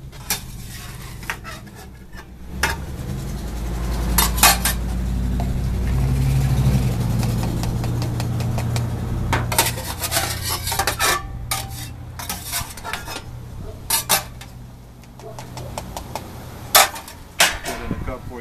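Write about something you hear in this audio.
A metal scoop scrapes and clatters against a metal tray.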